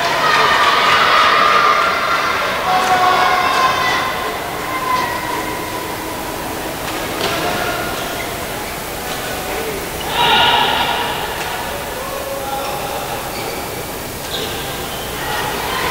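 Sports shoes squeak on a hard court.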